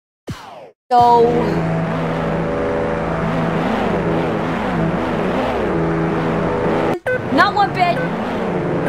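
A racing car engine hums and roars.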